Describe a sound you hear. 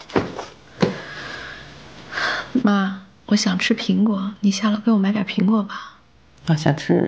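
A young woman speaks calmly and softly nearby.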